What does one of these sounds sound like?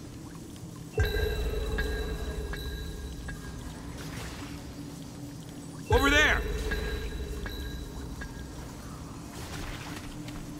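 A deep magical burst booms and rumbles slowly away.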